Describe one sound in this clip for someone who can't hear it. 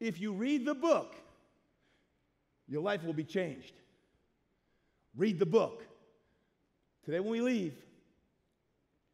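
A middle-aged man speaks with animation into a microphone, in short bursts.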